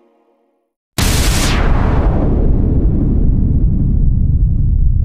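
Thunder cracks suddenly and rumbles on.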